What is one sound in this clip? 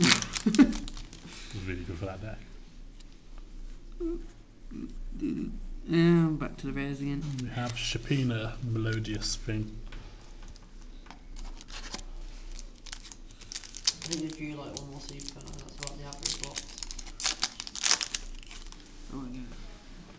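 Playing cards rustle and flick as they are shuffled by hand.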